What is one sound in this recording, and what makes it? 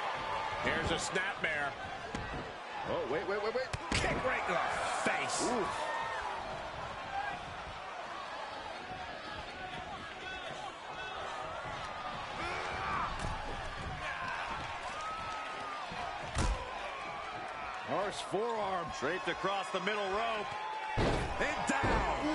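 Bodies thud heavily against a wrestling mat.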